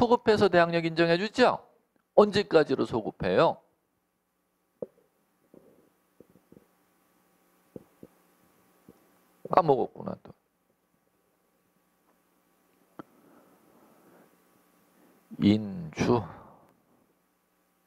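A man speaks into a microphone in bursts, with pauses.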